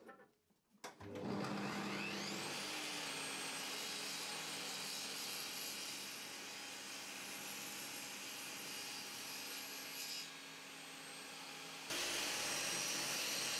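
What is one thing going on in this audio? A table saw runs with a steady high whine.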